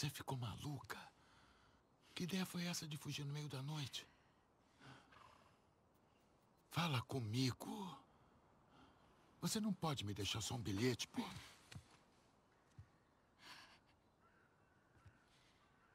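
A girl speaks softly and with emotion.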